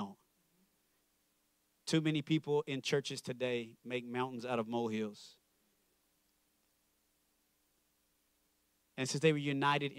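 A man speaks calmly through a microphone, with pauses between phrases.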